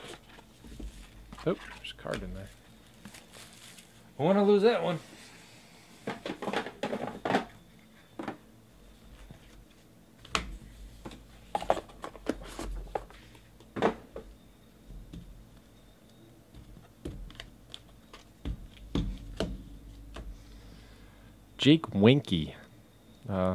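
Hard plastic card cases click and clack against a table as they are handled.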